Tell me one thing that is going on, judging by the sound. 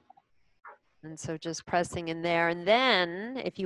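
A woman speaks calmly and melodically close to a microphone.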